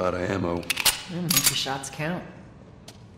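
A woman answers calmly.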